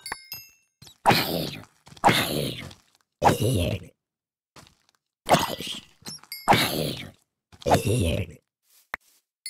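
A sword hits a creature with hard thuds.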